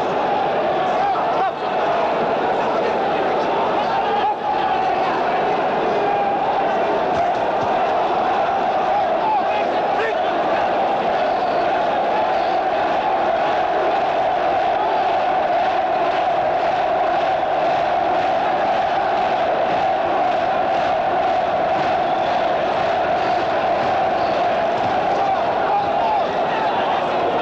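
A large crowd murmurs and cheers steadily in a big echoing hall.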